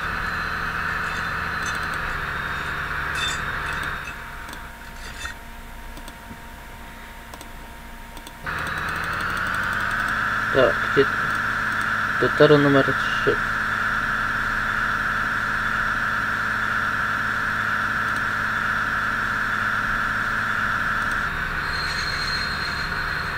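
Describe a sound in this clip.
A train engine drones steadily, dropping quieter for a few seconds and then growing louder again.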